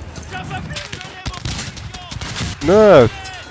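A machine gun fires in rapid bursts.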